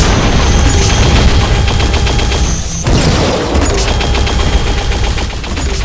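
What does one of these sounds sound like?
Rapid gunfire blasts and clatters.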